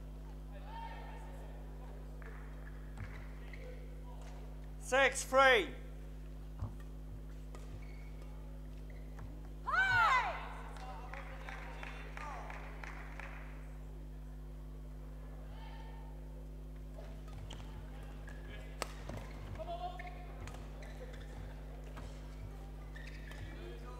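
Sports shoes squeak on a hard court floor.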